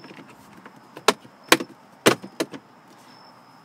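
Plastic trim clicks and snaps as hands pry it loose.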